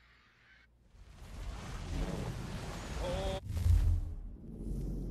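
A loud rushing whoosh swells up and ends with a deep boom.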